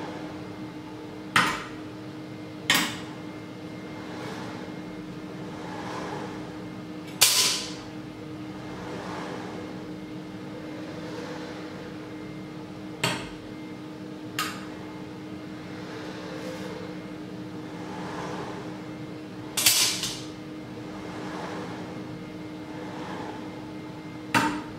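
A robot arm whirs as it moves.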